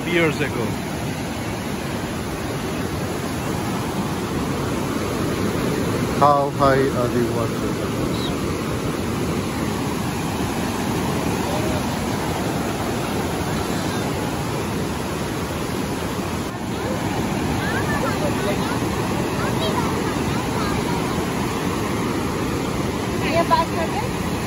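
River rapids roar loudly and steadily outdoors.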